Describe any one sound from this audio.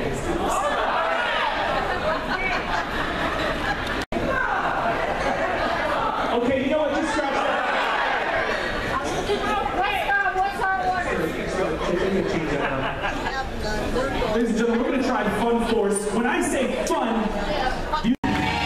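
A crowd chatters loudly in a large echoing hall.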